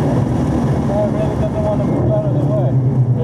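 Car tyres squeal briefly under braking.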